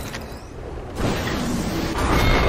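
A loud explosion bursts and crackles.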